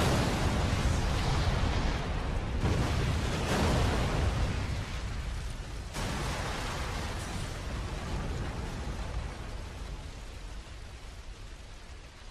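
Huge flames roar loudly and slowly die down.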